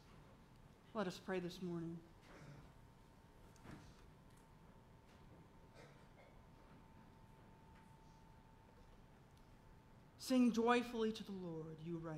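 A woman speaks calmly through a microphone in a large echoing room.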